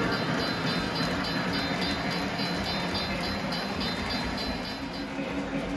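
A model train rumbles and clicks along its track close by.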